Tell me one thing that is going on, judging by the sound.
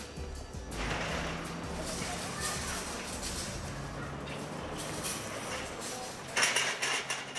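A long line of shopping trolleys rattles as it is pushed over paving.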